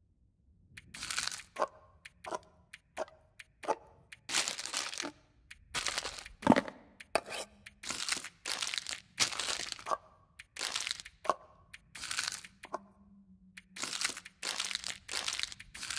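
Items land with quick rustling thuds, one after another.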